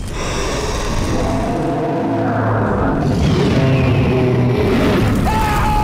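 Flames roar loudly.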